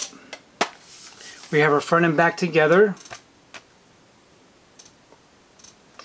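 Plastic packaging rustles and clicks in a man's hands.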